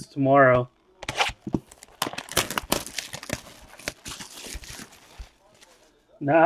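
A cardboard box scrapes and rustles as hands handle it.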